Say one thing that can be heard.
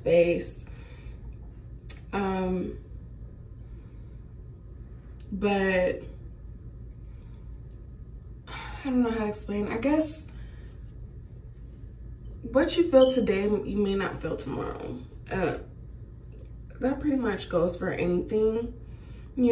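A young woman talks calmly and closely into a microphone, in short bursts with pauses.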